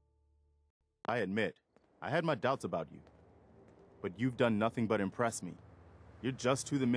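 A man speaks calmly and steadily, close up.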